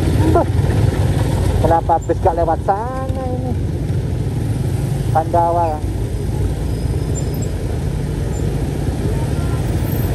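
A large bus engine rumbles alongside at close range.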